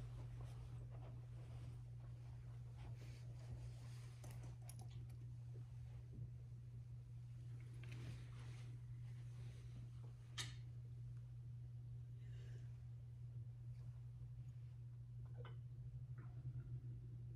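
Small vessels clink softly on a table.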